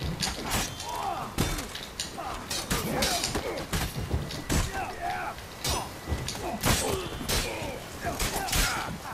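Men grunt and shout as they fight.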